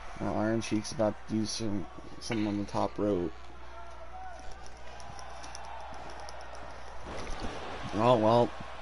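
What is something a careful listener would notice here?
A crowd cheers and murmurs in a large arena.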